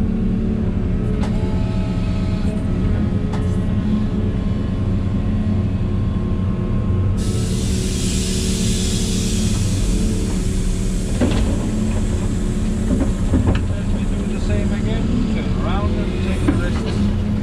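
An excavator engine drones steadily from inside the cab.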